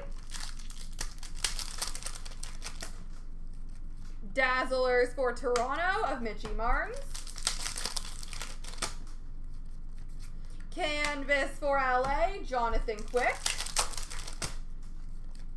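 Foil trading card packs crinkle in hands.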